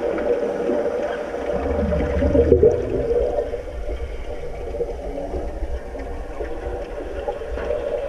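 Underwater, bubbles rush and gurgle as swimmers plunge in.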